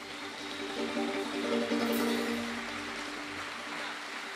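A banjo strums a chord.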